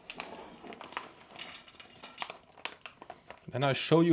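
A plastic bag crinkles as snacks are poured out.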